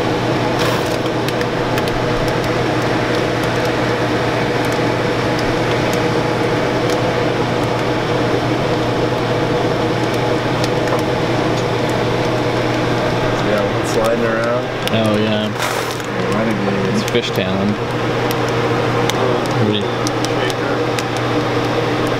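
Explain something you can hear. A machine hums and whirs steadily.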